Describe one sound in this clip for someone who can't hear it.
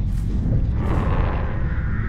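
Crows flap their wings.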